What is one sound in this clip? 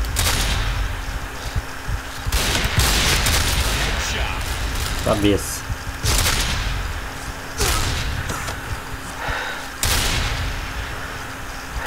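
A rifle fires loud, booming shots, each followed by a long echoing tail.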